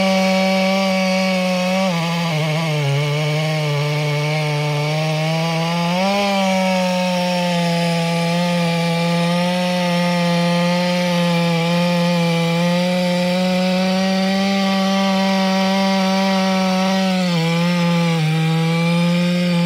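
A large two-stroke chainsaw cuts through a thick log under load, its engine note dipping as it bogs at times.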